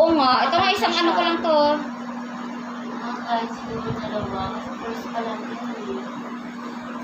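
A young woman speaks close by, then talks more quietly.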